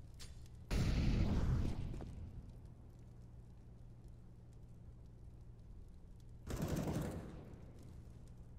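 A smoke grenade bursts with a loud hiss.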